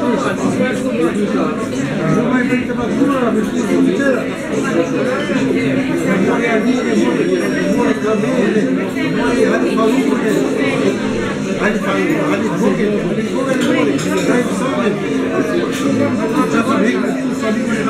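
Many men and women chat and talk over each other close by.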